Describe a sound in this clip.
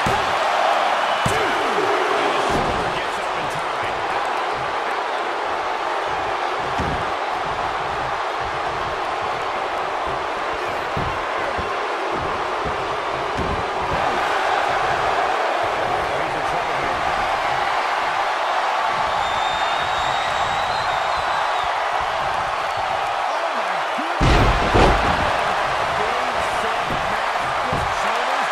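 A wrestler's strikes land with dull thumps.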